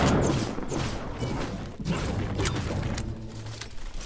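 A pickaxe strikes wood with sharp, repeated thuds.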